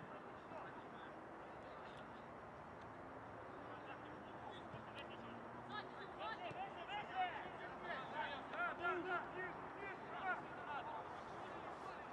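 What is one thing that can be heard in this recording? A crowd of spectators murmurs in the distance outdoors.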